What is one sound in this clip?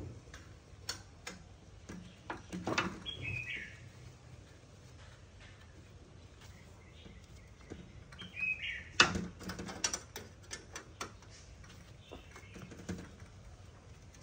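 A metal wrench clicks against a bolt on a bicycle frame.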